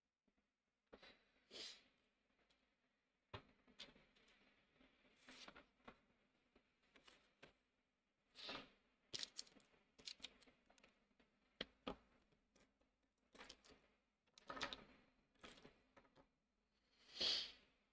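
Markers clatter as a hand sets them down on a wooden table.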